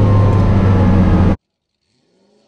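A car engine roars loudly from close by inside the cabin.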